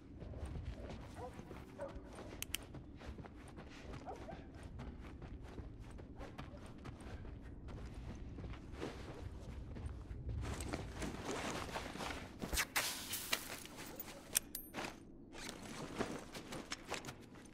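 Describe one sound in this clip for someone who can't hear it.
Footsteps thud softly on a wooden floor.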